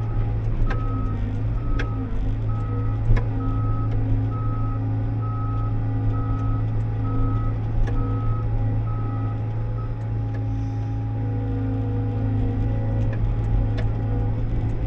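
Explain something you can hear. A machine's metal parts clank and knock now and then as it drives over rough ground.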